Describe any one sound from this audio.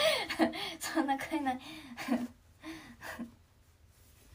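A young woman speaks brightly and cheerfully close to a microphone.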